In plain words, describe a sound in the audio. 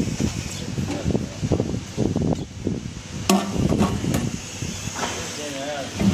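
A metal spout clicks as a man turns it by hand.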